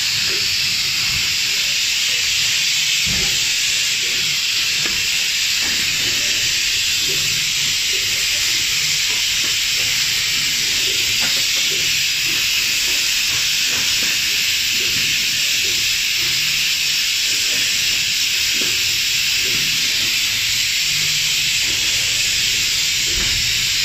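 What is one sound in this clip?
A machine clatters rhythmically with quick knocks.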